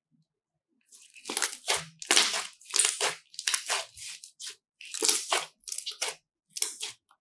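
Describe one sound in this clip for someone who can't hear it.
Hands squeeze and knead sticky slime with wet, squelching pops.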